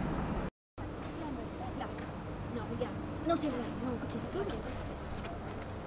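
A young woman speaks calmly outdoors.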